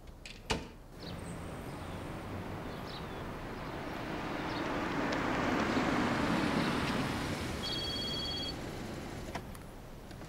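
A car engine hums as a vehicle drives closer and passes by.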